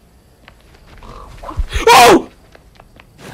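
A young woman cries out loudly in surprise, close to a microphone.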